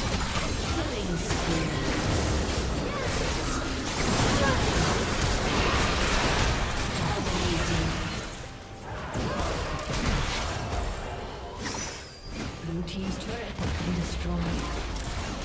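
Magic blasts whoosh and crackle in a busy fight.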